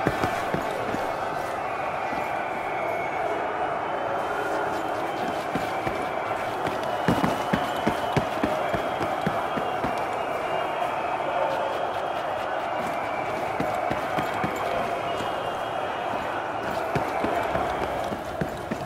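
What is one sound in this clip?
Footsteps tread on a hard floor at a steady walking pace.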